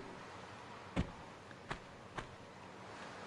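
Light footsteps tap on a stone floor.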